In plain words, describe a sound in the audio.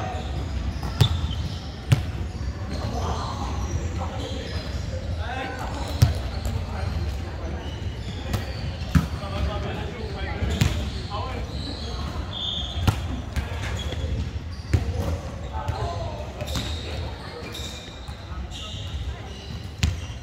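A volleyball is struck with sharp slaps, echoing in a large hall.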